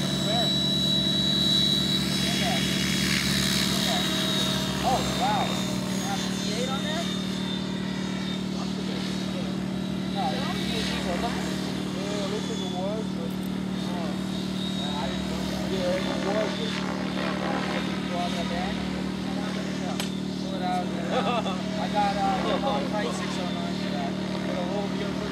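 A model helicopter's rotor and motor whine steadily as it flies overhead.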